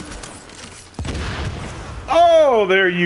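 An explosion booms with a deep roar.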